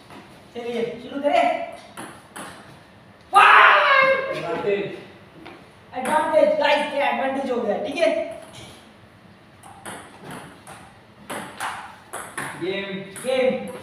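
A table tennis ball clicks back and forth against paddles and a table.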